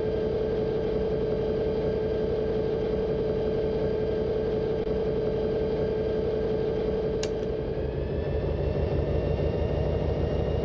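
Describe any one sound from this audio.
A diesel locomotive engine drones steadily while rolling along the rails.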